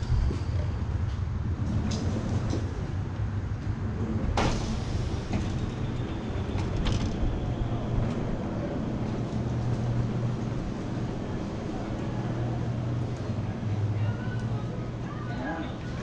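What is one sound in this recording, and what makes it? Scooter wheels rumble over a hard floor.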